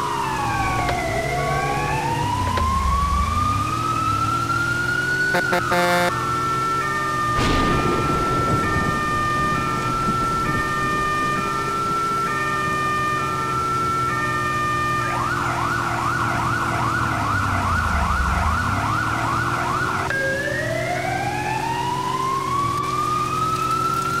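A fire truck siren wails, rising and falling.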